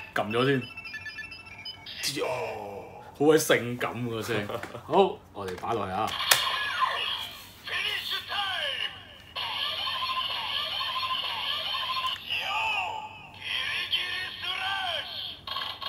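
A toy weapon plays loud electronic sound effects and music.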